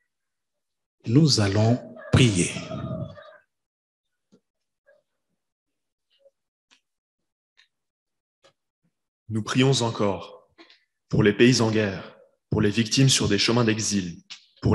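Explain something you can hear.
A man speaks calmly through a microphone in a large echoing room, with pauses between phrases.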